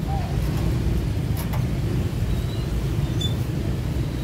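Motor scooters hum along a busy street nearby.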